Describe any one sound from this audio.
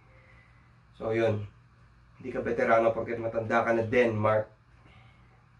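A young man talks calmly and closely to the listener.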